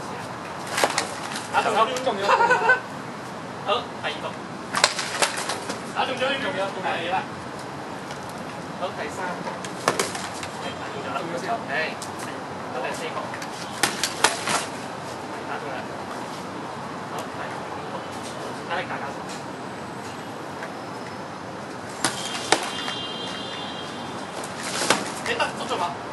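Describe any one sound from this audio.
Padded swords clash and knock together sharply.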